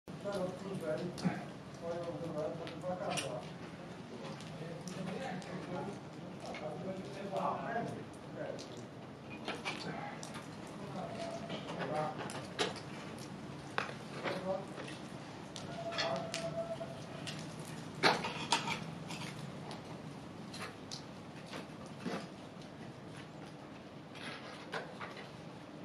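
Metal carabiners clink against rock as a climber moves up a wall.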